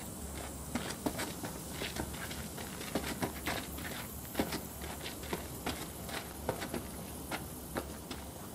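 Footsteps crunch steadily on dry dirt and grass.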